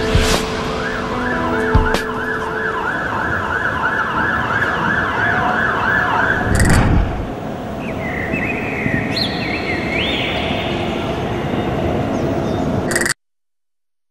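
Distant city traffic hums steadily outdoors.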